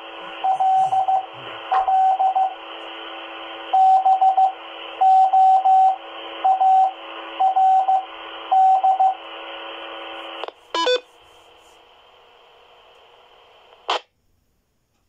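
A radio speaker hisses with steady static.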